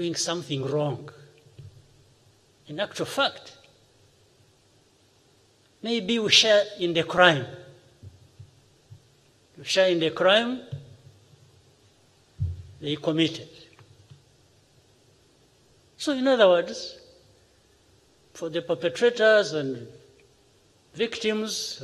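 An elderly man speaks deliberately into a microphone, in short phrases with pauses.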